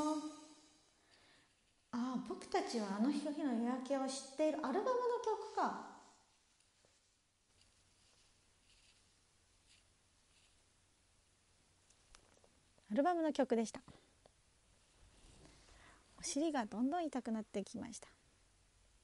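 A young woman speaks close to the microphone in a high, playful voice, in short bursts.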